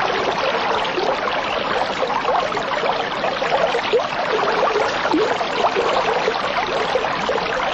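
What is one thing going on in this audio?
Air bubbles gurgle steadily through water.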